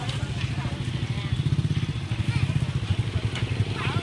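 A motor scooter engine idles.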